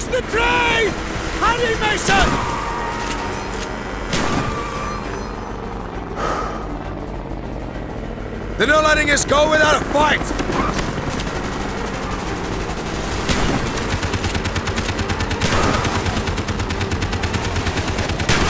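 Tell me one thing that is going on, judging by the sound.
A motorcycle engine roars steadily.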